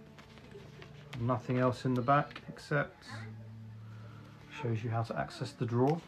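Paper crinkles as a booklet is handled.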